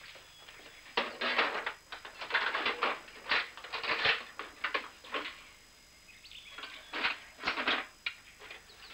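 Metal tools clink and rattle in a box.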